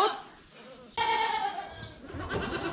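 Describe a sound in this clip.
Goats bleat nearby.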